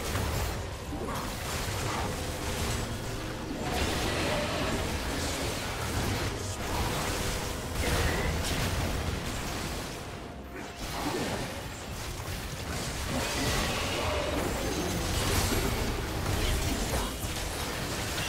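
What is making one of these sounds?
Game spell effects and attacks crackle and boom in a fight against a large monster.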